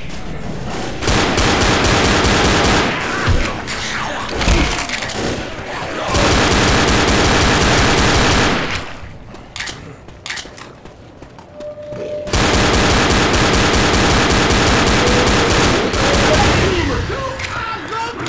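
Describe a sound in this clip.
Pistol shots fire in rapid bursts, echoing off hard walls.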